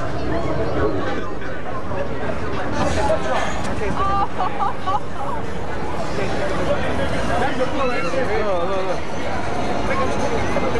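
A crowd of people talk and shout loudly nearby.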